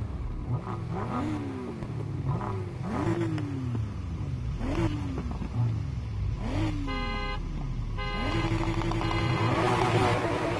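Car tyres screech on asphalt while drifting.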